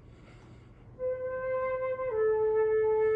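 A flute plays steady, clear notes.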